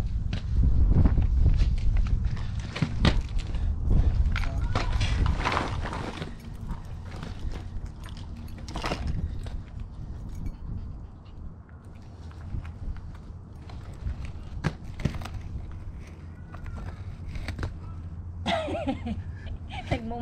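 Inline skate wheels roll and scrape on rough pavement close by.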